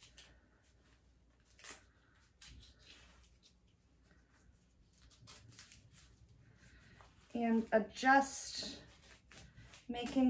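Velcro straps rip and rasp as a brace is fastened.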